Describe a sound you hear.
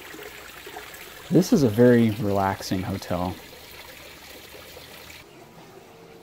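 Water splashes steadily into a pond.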